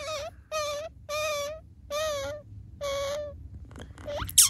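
A tiny newborn animal squeaks in short, high, repeated cries.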